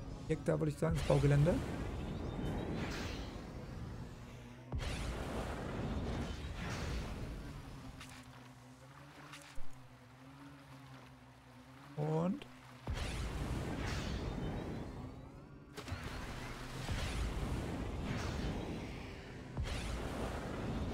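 A spacecraft engine roars and hums.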